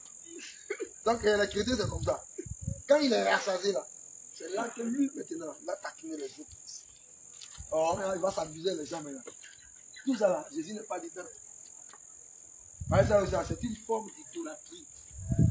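A man speaks with animation outdoors.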